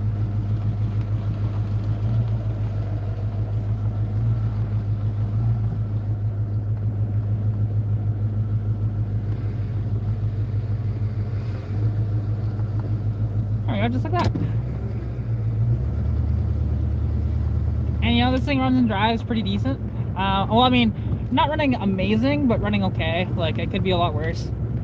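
A car engine rumbles low and steadily.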